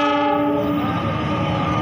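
A diesel locomotive horn blares briefly.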